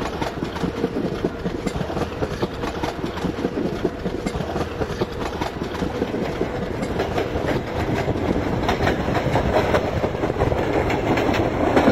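A train rumbles along the tracks with a dense clatter of wheels that slowly grows louder.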